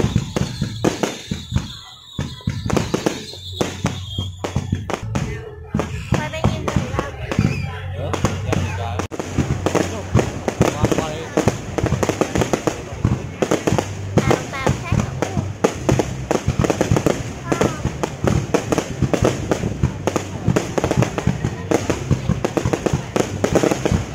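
Fireworks rockets whistle and hiss as they rise.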